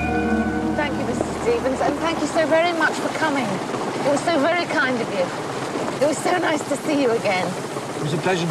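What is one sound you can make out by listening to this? A woman speaks softly and emotionally close by.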